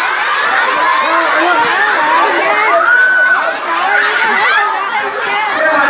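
A large crowd of children shouts and screams excitedly close by.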